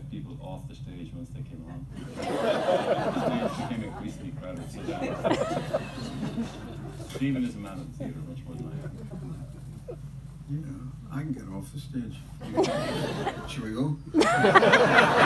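A crowd murmurs and chats nearby.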